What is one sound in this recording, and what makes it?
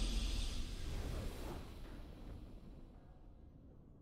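A bright, shimmering game fanfare swells at the start and then fades into a low rumble.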